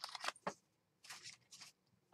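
A plastic sheet rustles.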